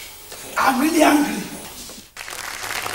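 A man speaks loudly and angrily on a stage.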